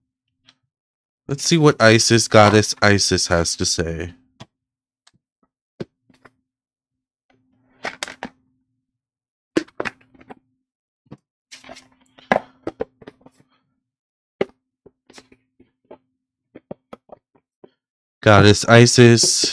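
Cards shuffle and slap softly on a table.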